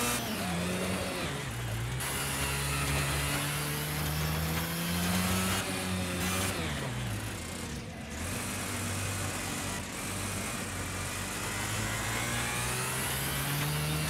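A kart engine buzzes loudly, revving up and down through the corners.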